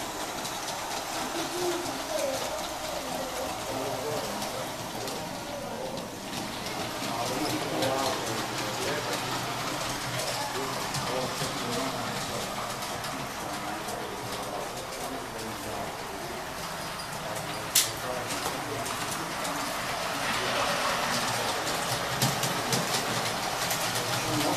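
Model trains rattle and hum along their tracks.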